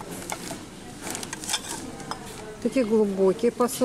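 A ceramic plate clinks against a stack of plates.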